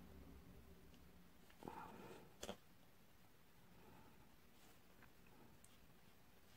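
Rubber gloves rustle softly.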